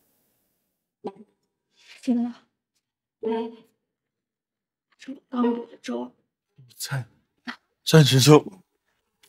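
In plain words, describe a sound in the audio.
A young woman speaks softly and worriedly close by.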